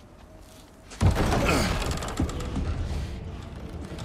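A heavy wooden door creaks and swings open.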